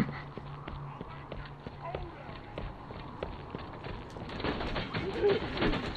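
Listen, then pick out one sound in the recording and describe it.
Footsteps clank on a metal floor.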